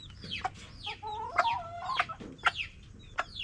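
A hen clucks softly.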